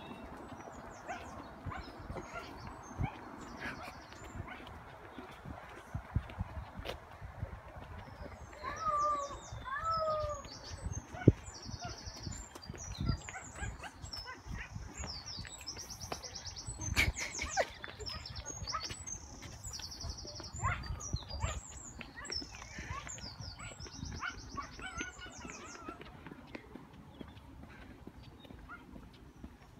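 A small child's footsteps patter along a paved path.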